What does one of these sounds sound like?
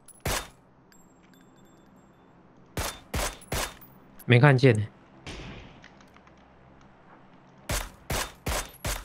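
Rifle shots ring out sharply, one after another.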